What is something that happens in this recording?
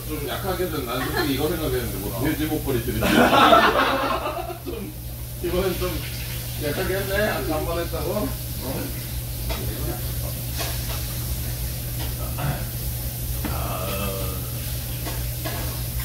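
Young men and women talk and laugh together nearby.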